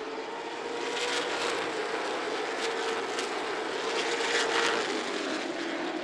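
Race cars roar past close by in a sudden loud rush.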